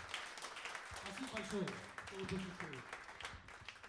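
A harmonica plays a wailing melody into a microphone.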